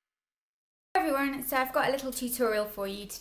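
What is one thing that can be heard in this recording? A young woman talks cheerfully and close up.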